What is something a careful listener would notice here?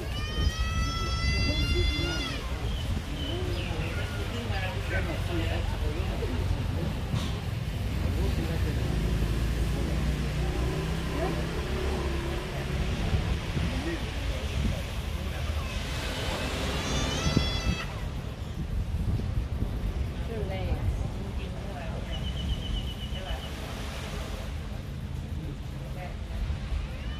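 Small waves wash gently onto a shore outdoors.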